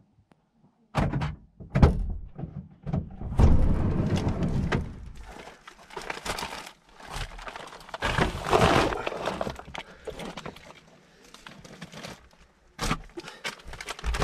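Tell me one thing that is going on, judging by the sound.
Items rustle and knock as a man rummages nearby.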